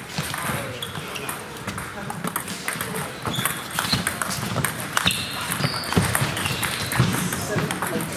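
A table tennis ball clicks back and forth off paddles and a table.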